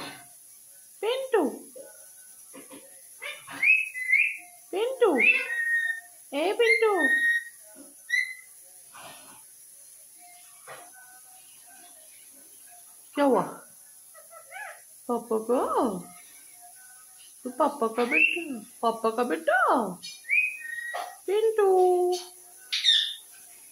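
A parrot squawks and chatters close by in short bursts of gliding calls.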